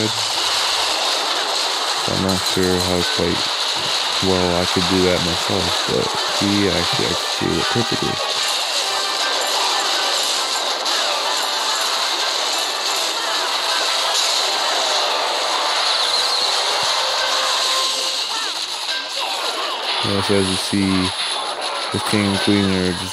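A video game battle clashes and crackles with small blasts.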